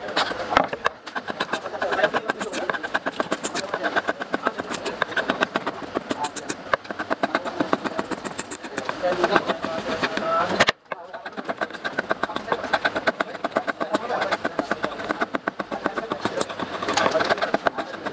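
A knife blade scrapes and shaves wood in quick, rapid strokes.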